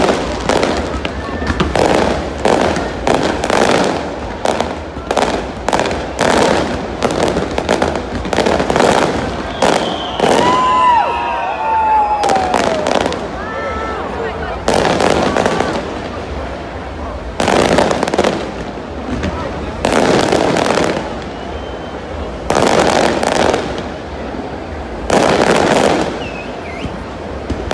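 Fireworks bang and crackle outdoors, echoing loudly.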